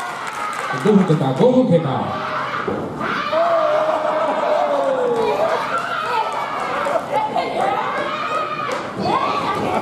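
A young woman shouts and yells in a large echoing hall.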